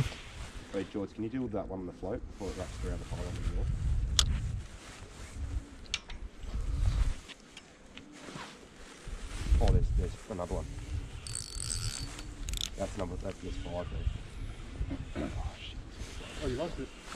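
A man speaks casually, close to the microphone.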